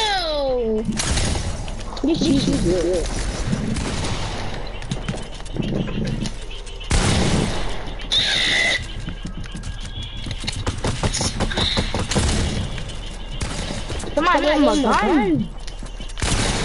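Gunshots from a video game crack in quick bursts.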